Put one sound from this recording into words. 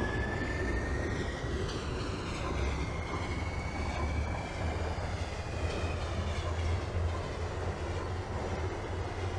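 The traction motors of an electric subway train whine, rising in pitch as it speeds up.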